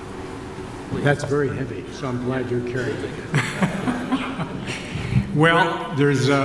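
An elderly man speaks warmly into a microphone over a loudspeaker.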